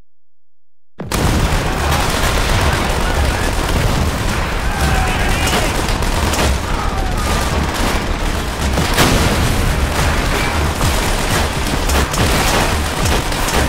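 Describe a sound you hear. Gunfire and explosions rumble loudly in a battle.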